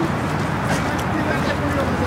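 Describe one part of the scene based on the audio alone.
Footsteps of a runner pass close by on a paved path.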